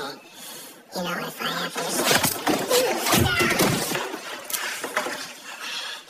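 Bodies scuffle and thud in a struggle.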